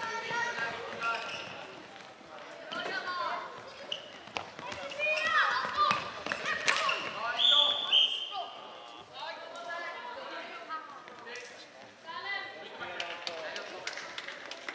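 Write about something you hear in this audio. Plastic sticks clack against a ball and each other.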